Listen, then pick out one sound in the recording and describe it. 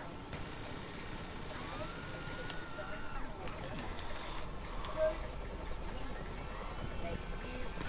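A helicopter whirs overhead.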